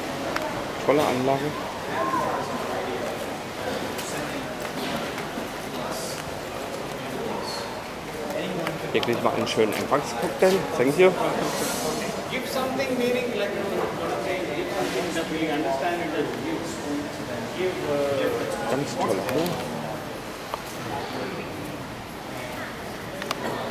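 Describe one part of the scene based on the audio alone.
Men and women chat in a crowd nearby, their voices mixing in a murmur.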